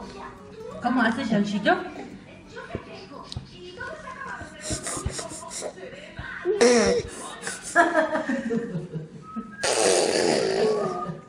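A baby whines and cries up close.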